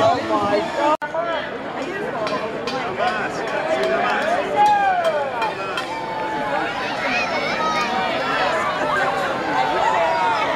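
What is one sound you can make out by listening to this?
Children shout and squeal excitedly nearby.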